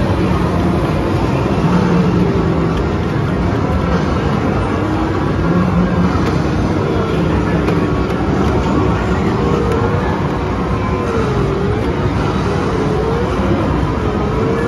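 An arcade racing game roars loudly with engine sounds and music.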